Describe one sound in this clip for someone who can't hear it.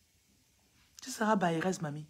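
A woman speaks emotionally close to a phone microphone.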